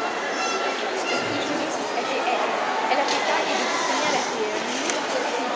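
A crowd of spectators murmurs and chatters in a large echoing hall.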